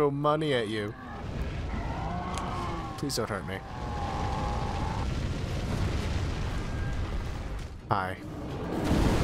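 Flames roar steadily in a low rumble.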